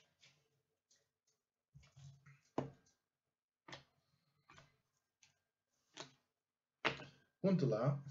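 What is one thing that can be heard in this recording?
Cards click and slide against each other as hands shuffle through them.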